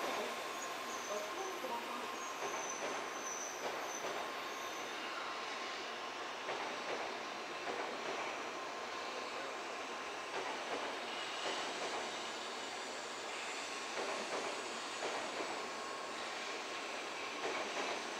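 A distant train rumbles slowly along the rails.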